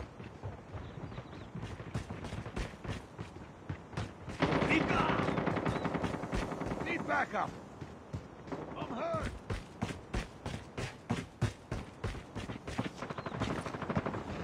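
Footsteps thud at a steady running pace.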